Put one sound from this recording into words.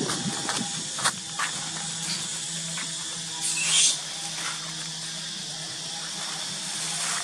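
Monkeys scamper and rustle through dry leaves.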